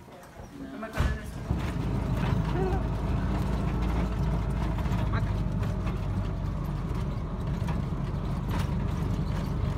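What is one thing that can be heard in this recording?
A small motor vehicle's engine rumbles steadily as it rides.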